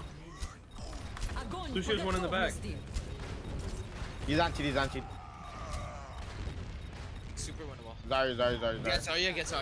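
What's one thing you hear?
Weapons fire in rapid bursts in a video game.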